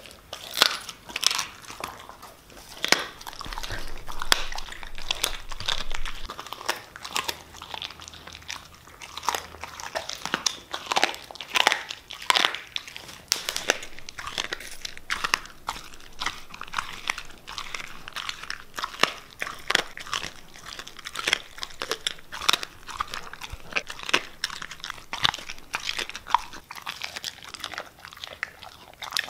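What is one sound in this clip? A dog chews and gnaws wetly on a raw bone, close by.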